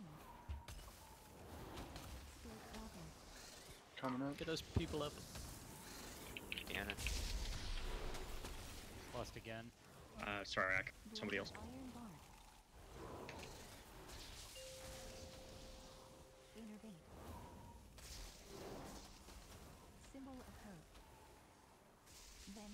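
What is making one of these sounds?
Game spell effects whoosh, crackle and boom.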